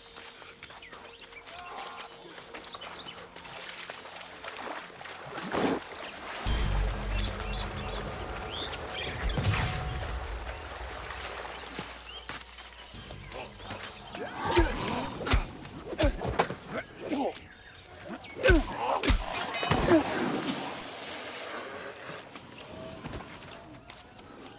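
Footsteps run across wet sand.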